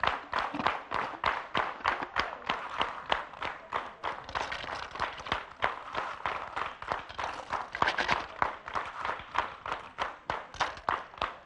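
Shells rattle and clatter inside a shaken plastic bag.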